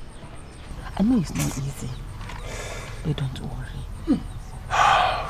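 A woman speaks softly and pleadingly close by.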